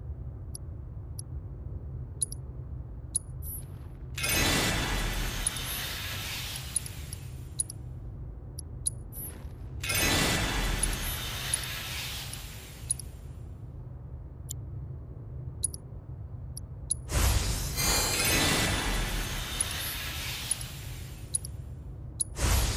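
Short electronic menu beeps tick now and then.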